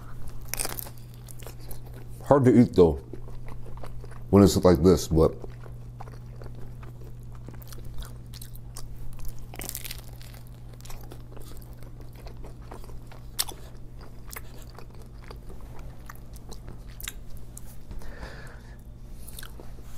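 A young man bites into a sandwich and chews noisily.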